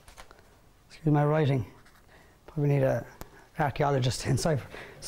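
A man speaks clearly and calmly nearby.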